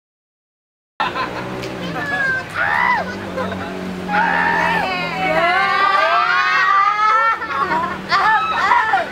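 A crowd of young people screams and cheers loudly, heard close by.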